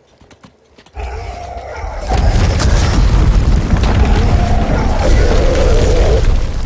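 Rocks crash and rumble down in a loud, ongoing rockslide.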